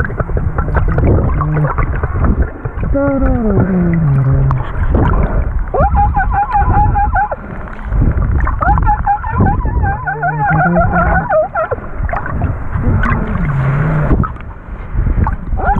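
Dolphins click in rapid bursts underwater.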